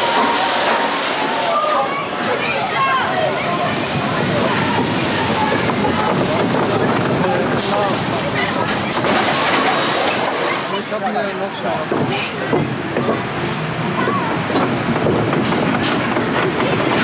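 A ride car rattles and clatters along a track.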